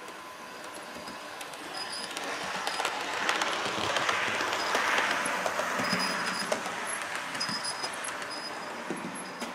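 A model train rattles and whirs along its track.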